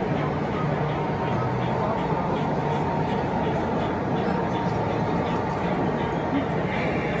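A model train rumbles along its track with a rhythmic clicking of wheels.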